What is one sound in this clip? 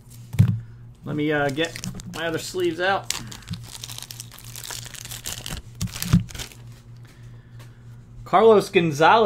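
Card packs crinkle and rustle as hands open them.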